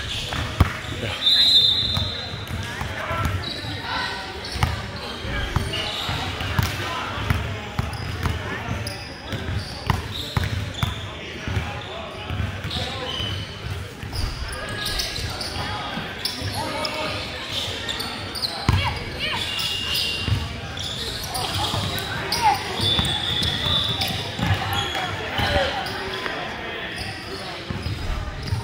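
Young players call out to each other across the gym.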